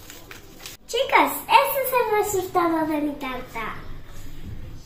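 A young girl sings brightly up close.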